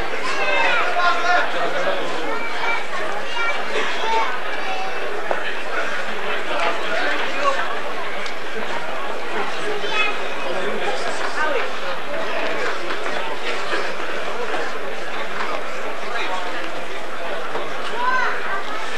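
Men shout and call out in the distance outdoors.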